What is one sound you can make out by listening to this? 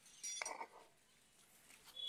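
A man twists wire around steel bars.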